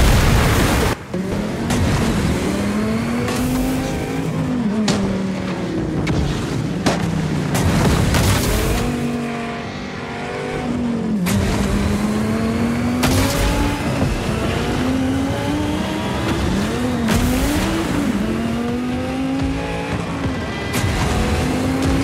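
A buggy's engine roars and whines, rising and falling in pitch as it races.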